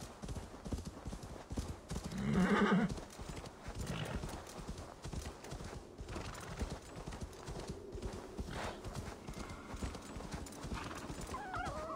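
A horse trots through snow with soft, muffled hoofbeats.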